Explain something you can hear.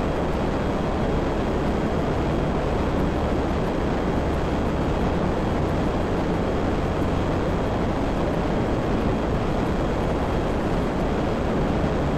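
A jet engine roars steadily as a plane flies low.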